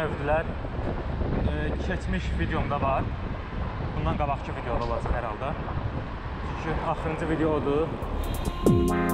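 Wind rushes past a cyclist riding a road bicycle.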